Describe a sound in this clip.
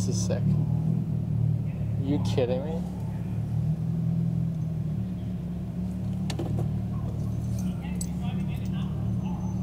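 A car engine hums steadily at low speed.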